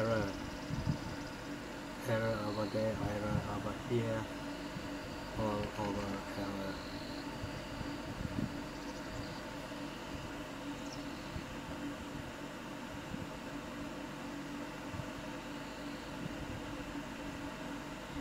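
Soft music plays quietly from a phone speaker.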